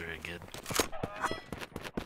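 A shotgun fires with a loud bang.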